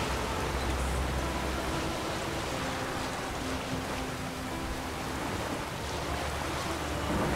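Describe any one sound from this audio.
Waves splash and crash against a small boat.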